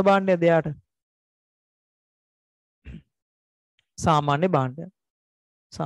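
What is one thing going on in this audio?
A man speaks calmly into a close headset microphone, in short bursts with pauses.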